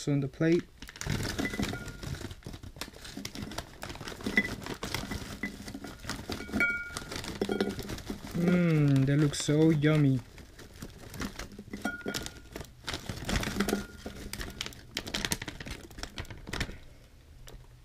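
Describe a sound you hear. Crunchy puffed snacks tumble into a glass bowl.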